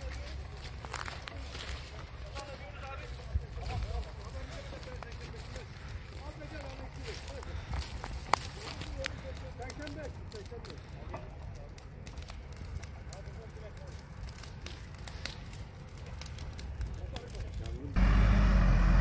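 Dry brush burns, crackling and popping sharply.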